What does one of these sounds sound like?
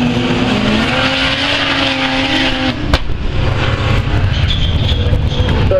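Race car engines roar and rev loudly as they speed away around a dirt track.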